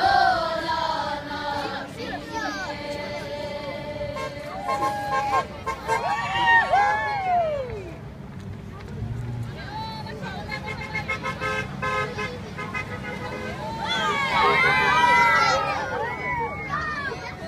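A crowd of children chants loudly outdoors.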